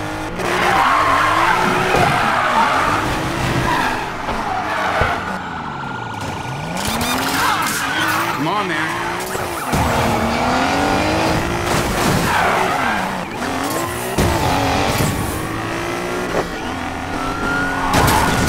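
Tyres squeal as a car drifts.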